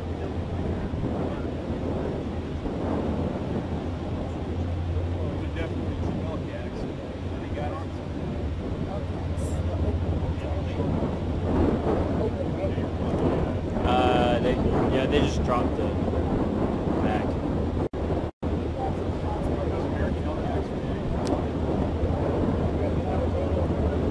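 Wind blows steadily outdoors by the sea.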